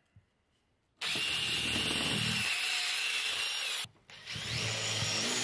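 A cordless drill driver drives a screw into wood.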